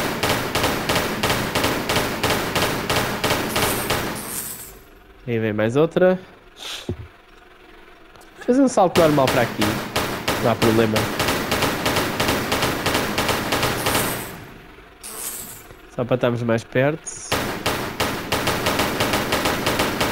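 Pistols fire in rapid, steady bursts.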